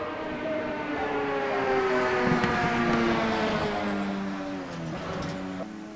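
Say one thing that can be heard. A racing car passes close by, its engine peaking and fading.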